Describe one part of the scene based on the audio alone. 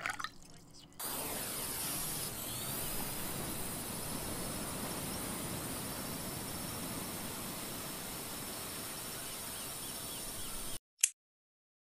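Waves wash onto a sandy shore with a steady rushing sound.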